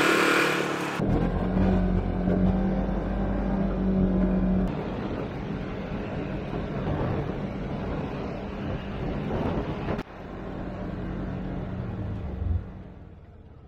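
An off-road vehicle engine hums steadily close by while driving.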